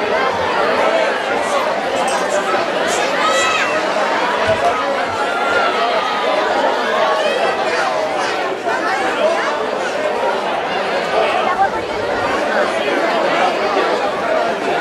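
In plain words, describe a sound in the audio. A large crowd of men, women and children chatters loudly all around, close by and outdoors.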